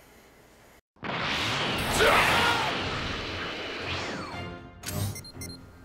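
A loud rushing whoosh roars up and slowly fades.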